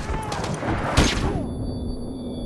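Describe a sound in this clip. An explosion blasts close by.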